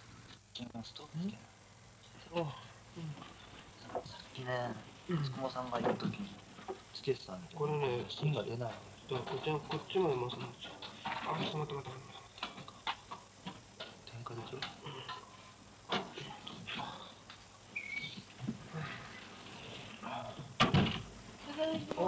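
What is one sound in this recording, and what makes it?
Two young men talk casually nearby.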